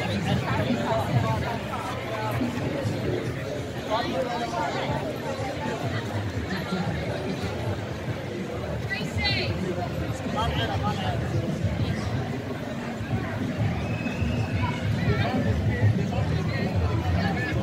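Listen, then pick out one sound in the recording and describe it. A crowd of onlookers murmurs and chatters outdoors.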